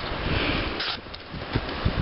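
A knife slices through paper.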